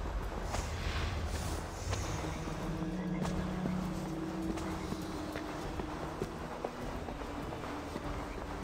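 Soft footsteps tap on a stone floor.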